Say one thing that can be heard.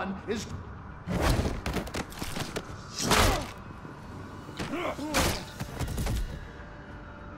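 Heavy blows and thuds land in a scuffle.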